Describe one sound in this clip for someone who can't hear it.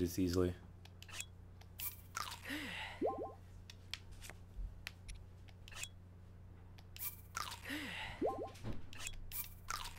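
Soft game menu clicks sound as items are selected.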